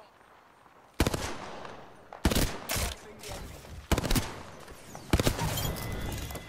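Gunshots fire in loud, sharp bursts.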